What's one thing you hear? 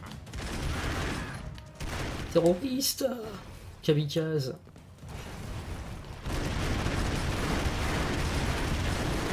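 Rapid gunfire crackles in a video game.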